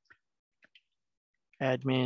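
Fingers tap on a computer keyboard.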